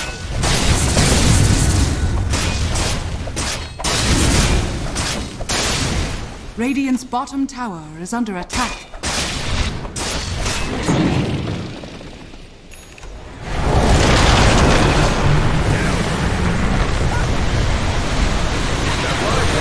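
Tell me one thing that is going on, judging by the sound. Magic spells crackle and boom in a noisy battle.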